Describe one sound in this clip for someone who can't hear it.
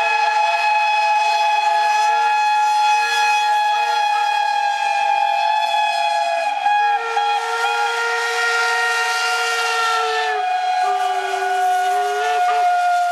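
Several steam locomotive whistles blow loudly together in a long, steady chord.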